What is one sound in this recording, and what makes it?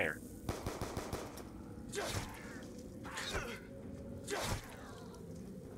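A pistol fires several quick shots.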